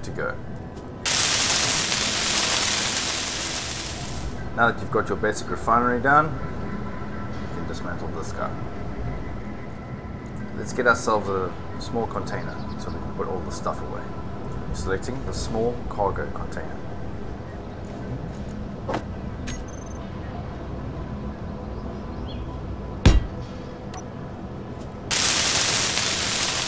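A welding tool hisses and crackles loudly.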